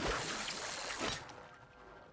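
A crackling energy beam fires with a loud hiss.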